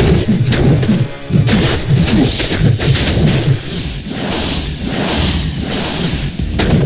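Magic spells crackle and burst.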